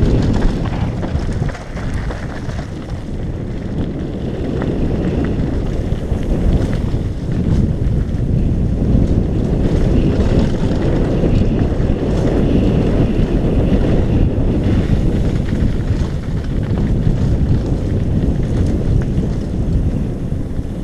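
Wind rushes and buffets loudly against a helmet.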